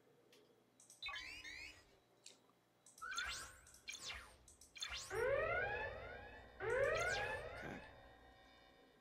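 Sci-fi laser blasts zap in bursts.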